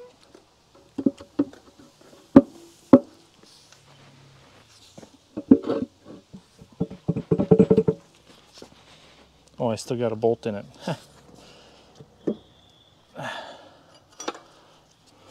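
Metal parts clank and knock against each other.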